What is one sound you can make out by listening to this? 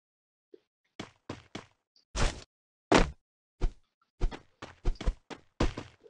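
Bare-fisted punches land with heavy thuds.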